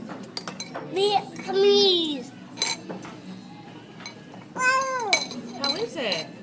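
A toddler squeals and babbles in high, sing-song cries.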